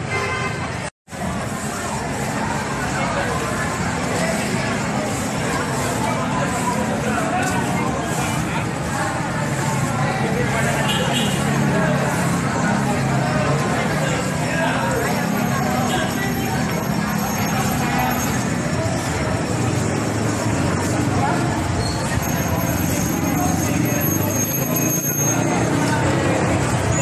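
A crowd of people chatters in the street.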